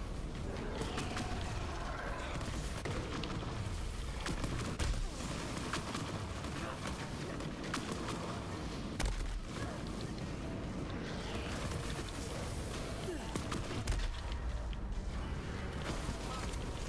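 A gun fires rapidly.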